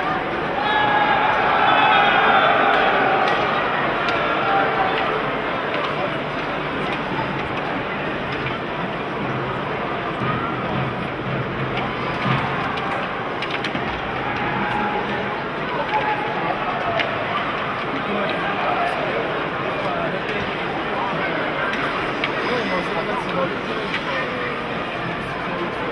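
Skates scrape on ice.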